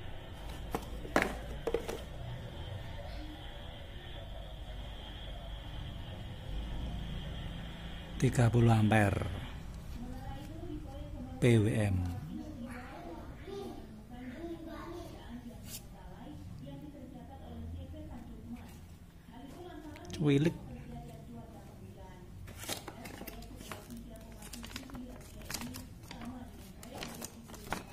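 Plastic packaging crinkles and rustles as hands handle it.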